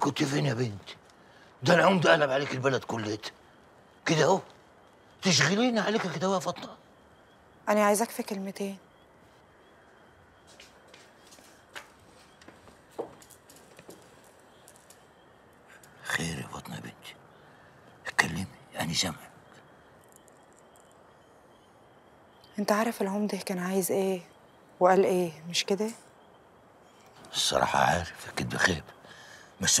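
A man speaks in a low, earnest voice close by.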